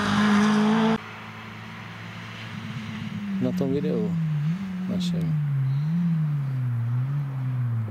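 A distant rally car engine revs up and down through the gears.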